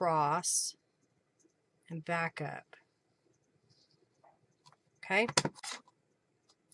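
A woman talks calmly into a close microphone, in short phrases.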